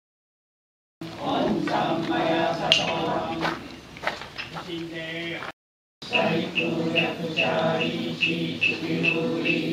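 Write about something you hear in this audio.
Several adults talk quietly nearby.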